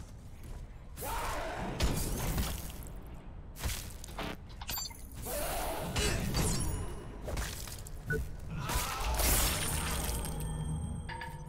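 Heavy metal blows clang and crash in a fight.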